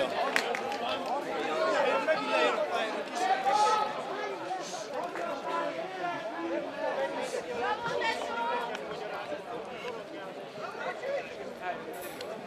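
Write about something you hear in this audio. A football thuds as players kick it across a grass field.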